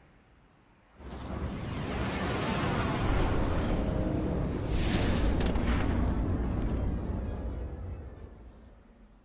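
A spacecraft's engines roar as it flies overhead and sets down.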